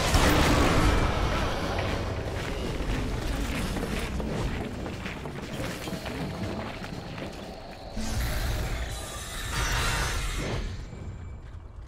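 Game battle effects crash and clash loudly.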